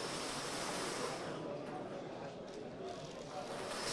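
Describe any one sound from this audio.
A lottery drum rattles as it turns.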